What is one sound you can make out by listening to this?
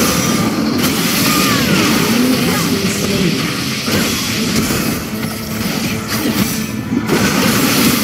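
Game magic spells crackle and zap during a fight.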